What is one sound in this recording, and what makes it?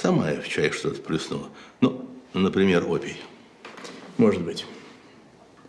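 An older man speaks calmly in a low voice.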